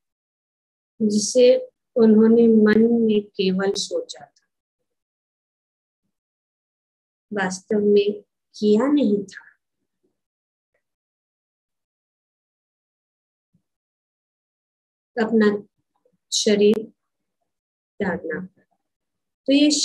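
An elderly woman speaks slowly and calmly over an online call, pausing between phrases.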